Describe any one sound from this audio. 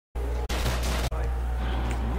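A gun fires in short bursts.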